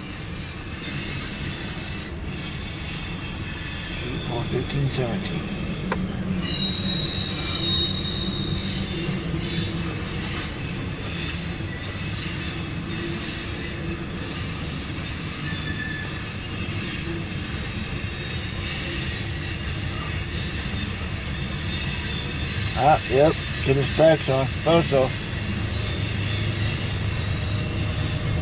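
A freight train rumbles and clatters past on the tracks.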